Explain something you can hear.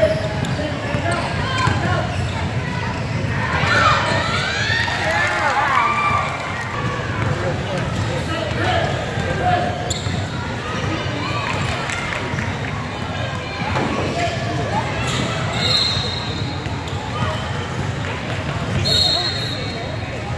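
Young girls and adult spectators call out and chatter in a large echoing gym.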